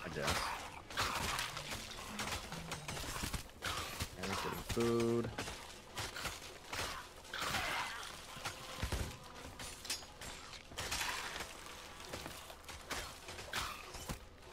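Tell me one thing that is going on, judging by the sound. A sword swings and strikes in a fight.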